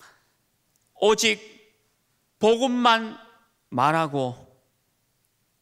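A man speaks through a microphone with emphasis, in short phrases with pauses.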